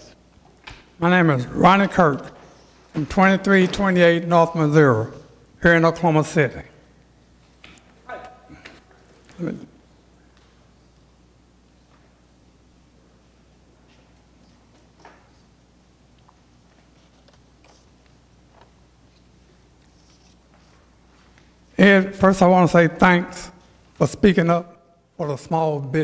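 An elderly man speaks slowly into a microphone.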